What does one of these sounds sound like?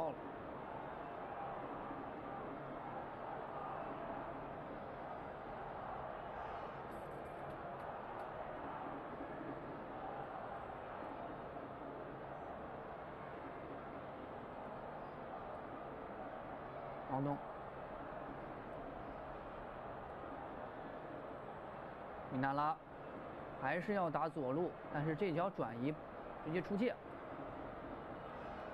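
A stadium crowd murmurs steadily in a large open space.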